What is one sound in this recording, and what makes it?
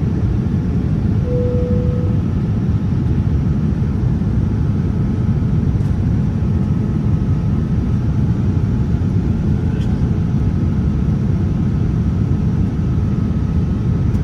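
Fingers tap lightly on a touchscreen.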